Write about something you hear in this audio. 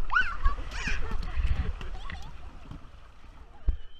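Water splashes and rushes around a raft.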